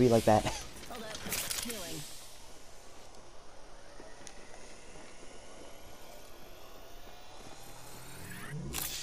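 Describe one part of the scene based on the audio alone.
A healing device whirs with a rising electronic whine.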